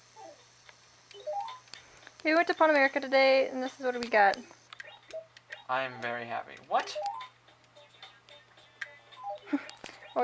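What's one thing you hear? A video game plays short chirping blips and babbling character sounds.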